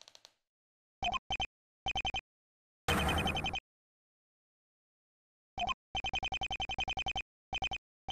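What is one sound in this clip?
Short electronic blips tick rapidly in bursts.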